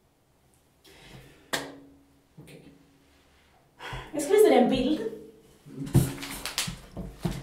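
A young woman speaks quietly and close by.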